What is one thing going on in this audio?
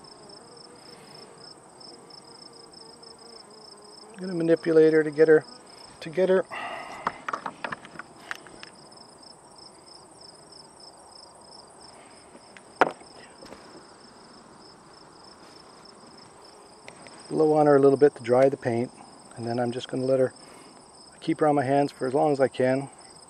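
Bees buzz around a hive.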